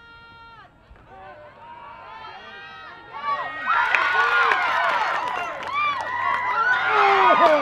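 A crowd of spectators cheers and shouts outdoors, growing louder as a play unfolds.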